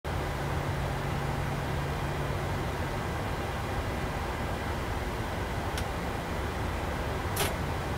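Jet engines hum steadily at idle.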